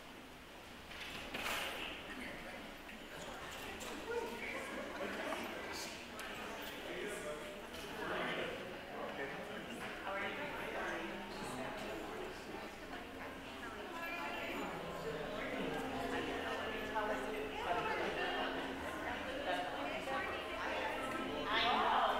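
A crowd of men and women chat casually around the room.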